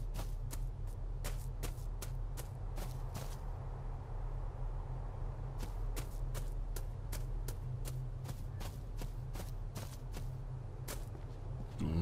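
Footsteps crunch steadily on a gravel path.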